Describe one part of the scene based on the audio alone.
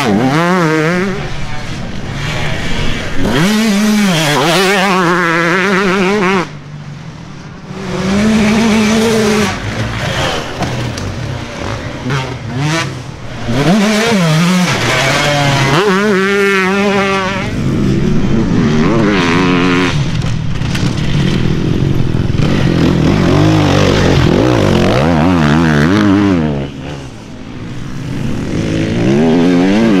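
A dirt bike engine revs hard and rises and falls in pitch as it speeds past.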